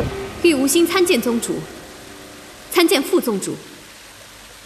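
A young woman speaks calmly and formally, close by.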